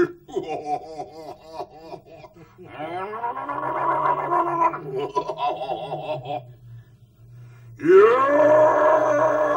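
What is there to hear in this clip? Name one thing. A man speaks with animation close by, his voice sometimes rising into a drawn-out, chanting cry.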